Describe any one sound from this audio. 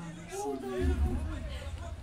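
A young man chuckles softly close by.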